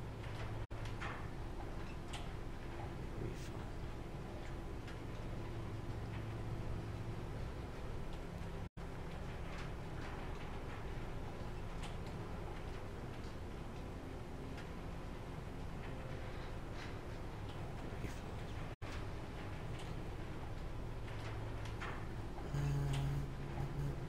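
A young man talks quietly into a close microphone.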